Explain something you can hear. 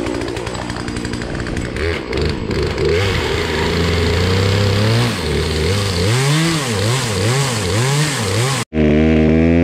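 A chainsaw's starter cord is yanked repeatedly as the engine sputters.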